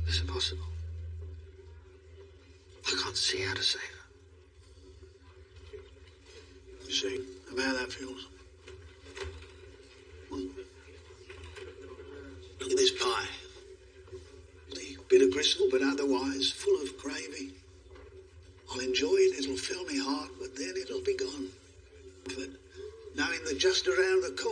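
An older man speaks in a low, calm voice nearby.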